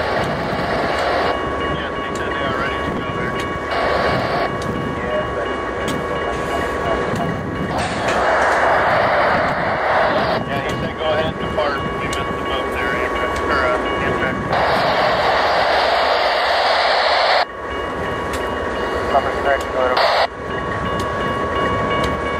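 Steel wheels clatter and squeal on the rails.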